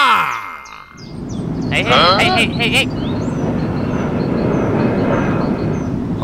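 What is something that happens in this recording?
A toy airplane's engines hum as it flies.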